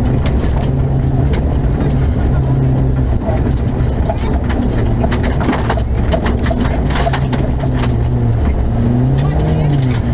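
A young woman reads out pace notes through an intercom.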